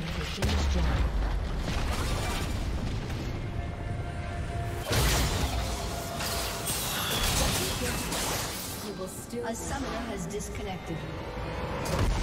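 Magic spells crackle and whoosh in a fast fight.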